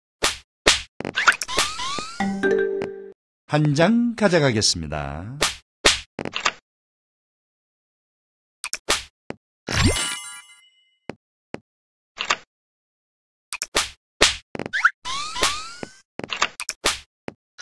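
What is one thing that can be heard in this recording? Bright chiming game sound effects ring out.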